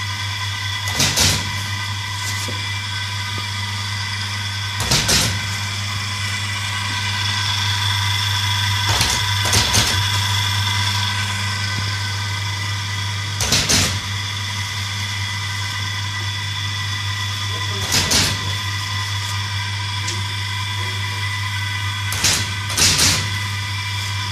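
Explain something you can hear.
Metal parts clank sharply now and then.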